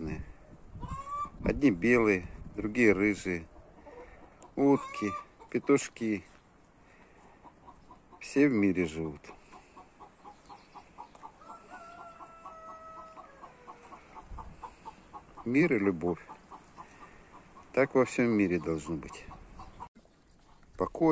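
Hens cluck and squawk loudly nearby.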